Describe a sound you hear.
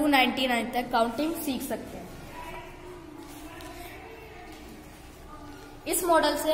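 A girl speaks close by, explaining with animation.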